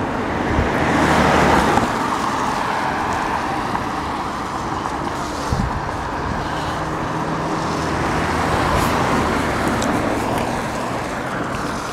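Cars swish past on a wet road.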